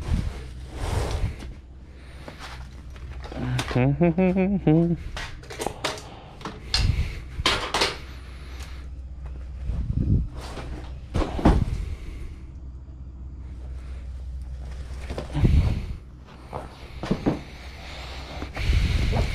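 A large stiff board scrapes and thumps as it is handled.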